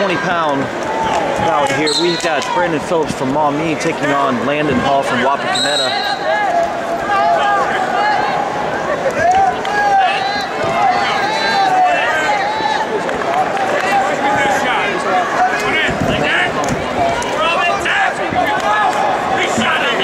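Wrestling shoes squeak on a mat.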